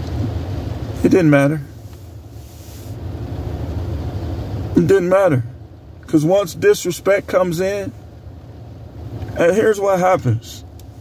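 A middle-aged man speaks close by in short bursts, calmly, with pauses.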